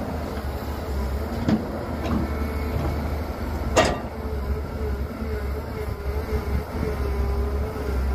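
An excavator's diesel engine rumbles steadily.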